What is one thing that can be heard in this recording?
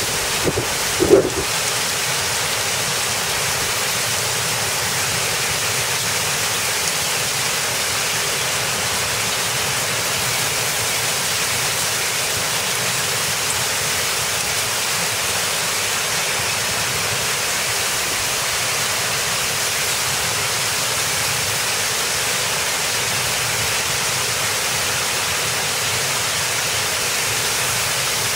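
Gusty wind blows outdoors.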